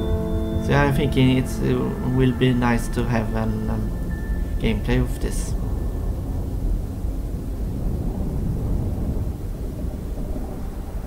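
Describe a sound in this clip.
A spacecraft engine rumbles low and steadily as it descends.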